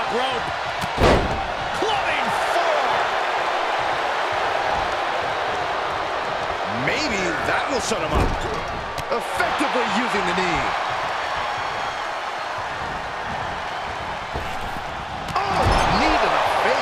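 Heavy bodies thud against a wrestling mat.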